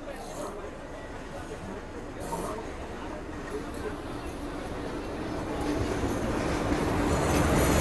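An electric locomotive rumbles closer and passes close by, pulling a train.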